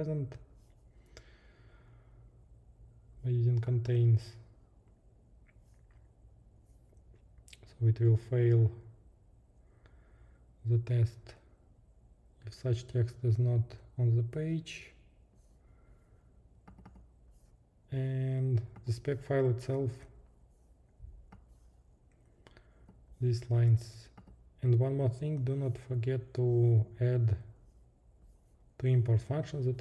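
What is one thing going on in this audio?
A man talks calmly into a close microphone, pausing often.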